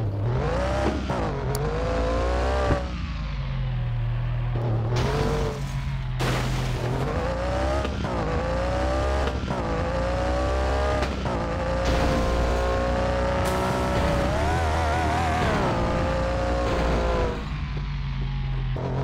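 A car engine revs up and down through the gears, rising and falling in pitch.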